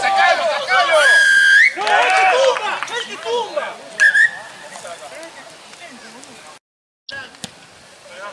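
Young men shout and call out to each other outdoors at a distance.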